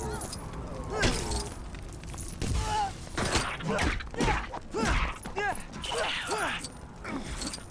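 Loud thuds and crashes of blocks breaking apart.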